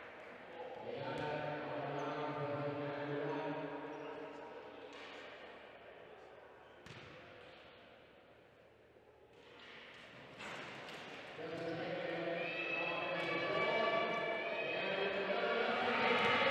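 Men call out to each other in a large echoing hall.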